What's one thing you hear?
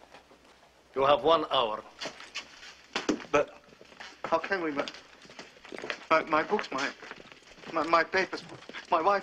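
A second man answers in a pleading, agitated voice.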